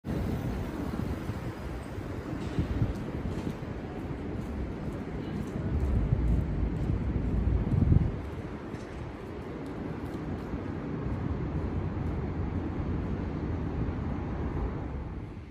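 A low city street hum carries on outdoors.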